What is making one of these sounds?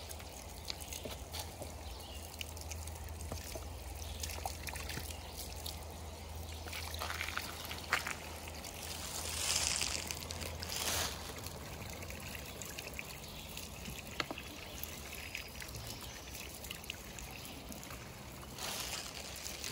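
A hand pump handle squeaks and clanks.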